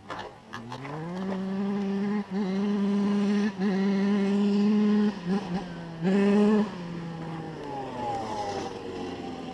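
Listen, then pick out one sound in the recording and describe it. A dirt bike engine idles with a steady hum nearby.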